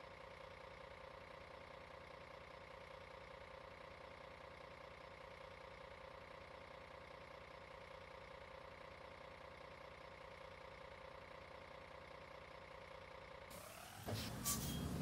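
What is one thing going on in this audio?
A bus engine idles with a steady low hum.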